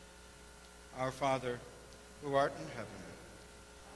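A man speaks briefly and loudly through a microphone.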